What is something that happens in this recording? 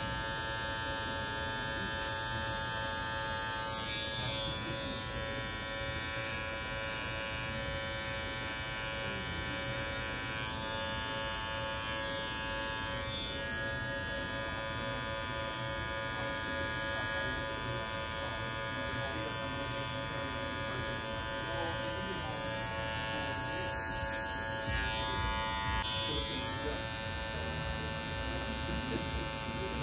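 Electric hair clippers buzz steadily close by.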